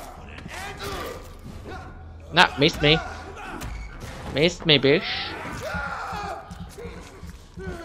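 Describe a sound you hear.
A man grunts and groans while fighting.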